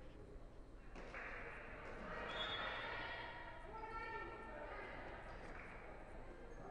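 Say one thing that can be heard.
Men talk calmly in a large echoing hall.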